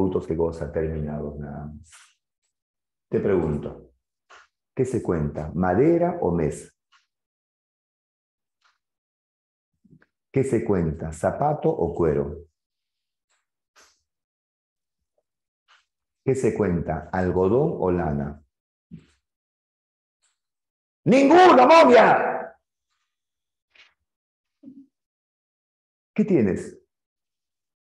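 A middle-aged man speaks with animation into a close microphone, in bursts with pauses.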